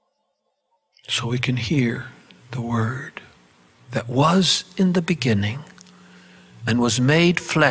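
An elderly man speaks with feeling into a microphone, heard through a loudspeaker.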